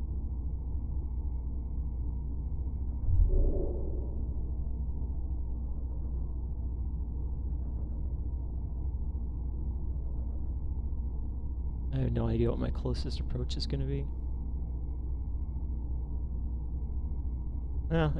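A low engine hum drones steadily.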